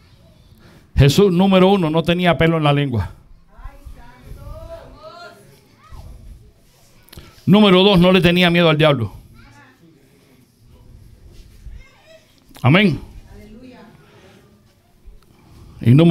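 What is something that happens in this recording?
A middle-aged man speaks with animation through a headset microphone and loudspeakers in an echoing room.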